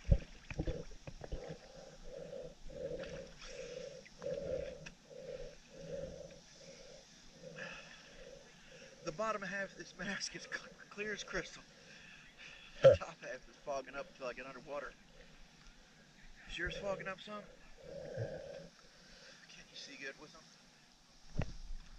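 Water laps and splashes close by as a swimmer paddles.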